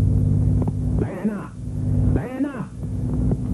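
A man speaks loudly with a puzzled tone.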